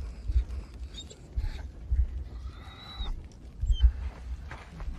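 Young pups squeak and whimper close by.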